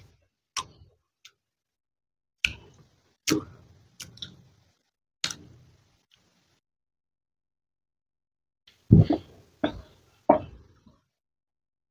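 A woman smacks her lips wetly close to a microphone.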